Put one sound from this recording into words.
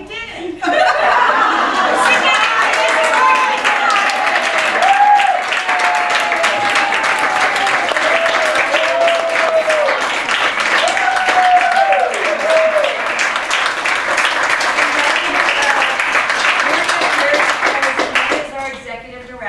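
A crowd of women cheers and whoops loudly.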